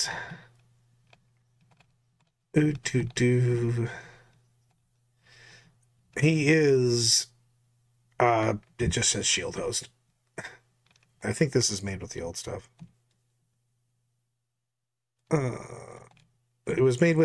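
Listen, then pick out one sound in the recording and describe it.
A man talks calmly, heard through an online call.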